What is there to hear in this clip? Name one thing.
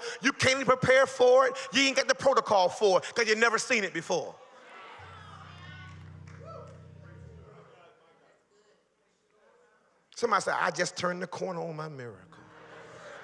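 A man preaches with animation into a microphone, heard through loudspeakers.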